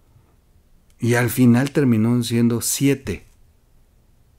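A middle-aged man speaks with emphasis into a close microphone.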